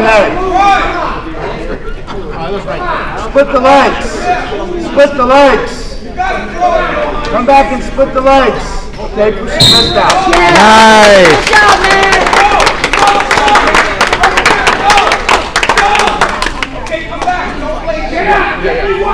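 Spectators shout and cheer loudly in an echoing hall.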